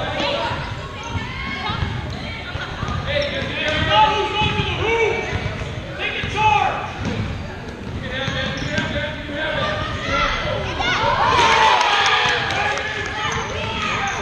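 Young girls shout and call out to each other.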